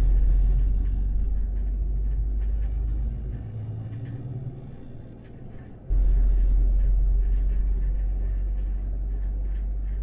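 An articulated city bus drives along with a low rumble.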